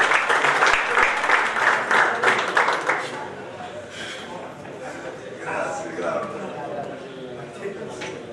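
A group of men laugh loudly in a room.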